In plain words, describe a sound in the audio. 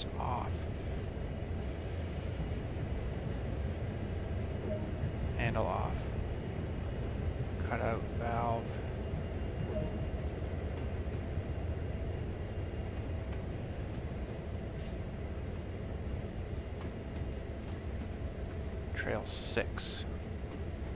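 A locomotive engine idles with a steady low rumble.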